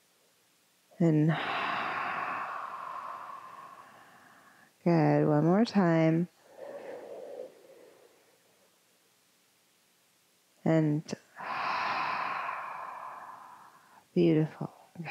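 A woman breathes in and out deeply and audibly.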